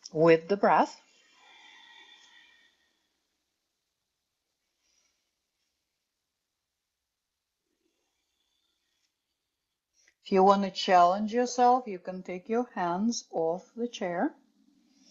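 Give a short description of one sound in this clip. A woman speaks calmly and clearly, as if instructing, close to a microphone.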